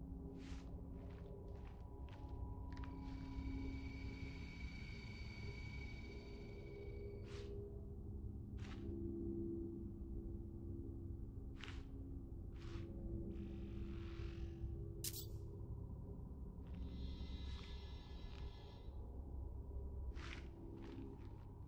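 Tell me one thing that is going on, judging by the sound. Soft electronic menu clicks tick now and then.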